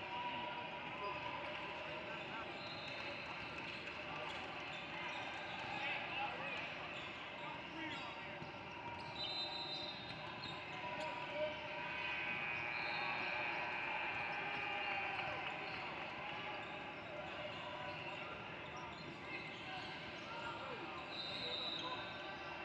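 A crowd chatters and murmurs in a large echoing gym.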